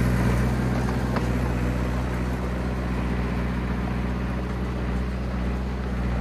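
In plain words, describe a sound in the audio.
Crawler tracks clank and crunch over snow.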